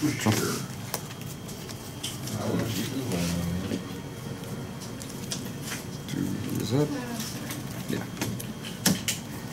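A playing card is laid on a table with a soft tap.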